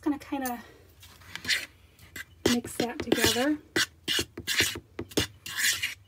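A spoon scrapes and stirs flour in a bowl.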